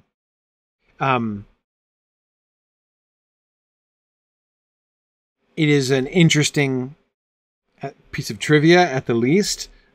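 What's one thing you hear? A middle-aged man speaks calmly and closely into a microphone.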